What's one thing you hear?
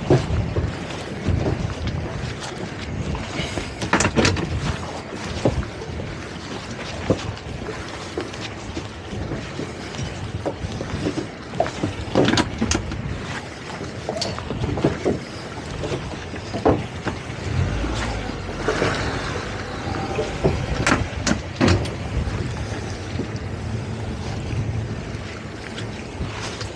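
Water slaps and splashes against a boat's hull.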